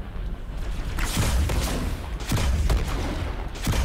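Gunfire rings out in short bursts.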